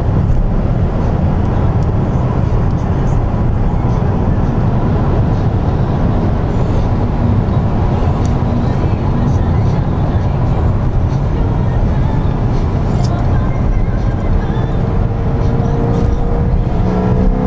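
Tyres roar on asphalt at high speed.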